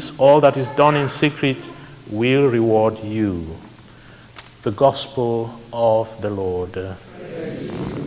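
A man chants through a microphone in a reverberant hall.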